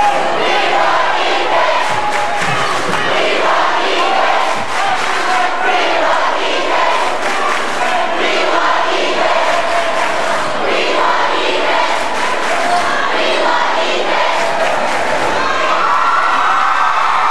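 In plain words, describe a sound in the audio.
A large crowd cheers and chatters loudly in an echoing gym.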